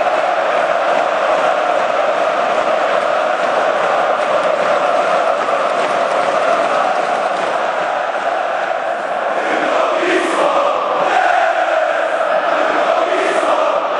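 A large stadium crowd chants loudly in unison, echoing under the roof.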